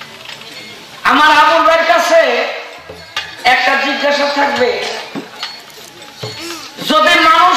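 A man sings loudly into a microphone, heard through loudspeakers.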